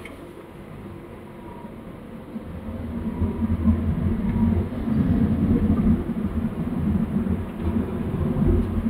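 A car engine rumbles low, heard from inside the car, growing louder as it speeds up.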